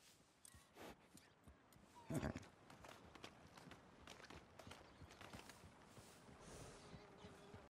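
A horse's hooves clop slowly on soft ground.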